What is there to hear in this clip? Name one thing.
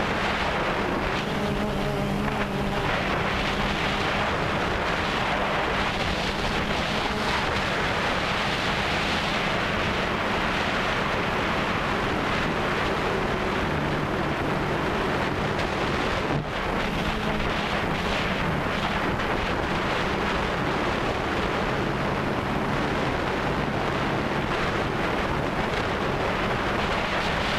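Wind rushes outdoors.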